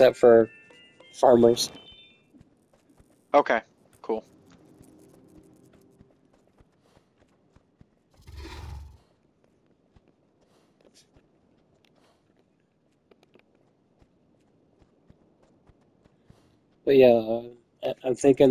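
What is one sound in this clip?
A horse's hooves clop steadily on a wooden walkway.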